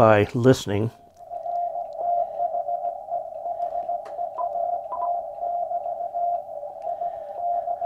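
A radio plays a fast, steady stream of Morse code beeps through its loudspeaker.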